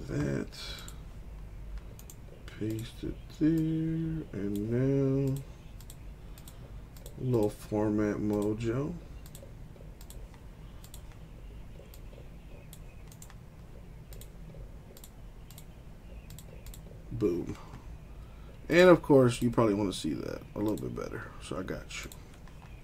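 Computer keys and a mouse click.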